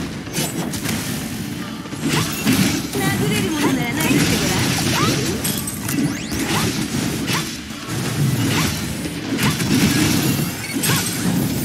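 Energy blasts whoosh and zap.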